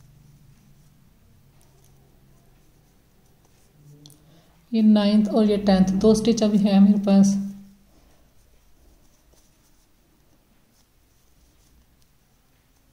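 A crochet hook softly scrapes and pulls through yarn.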